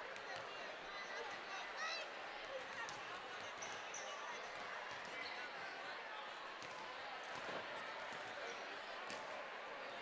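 A crowd murmurs and chatters throughout.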